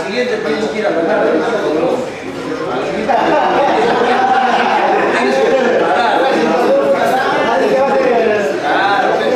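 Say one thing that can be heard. Several men talk and laugh together nearby.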